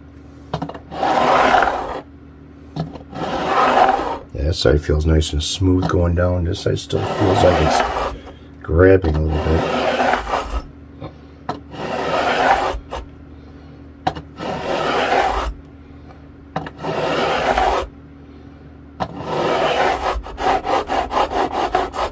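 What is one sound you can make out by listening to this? A sanding block rubs back and forth over metal frets in repeated scraping strokes.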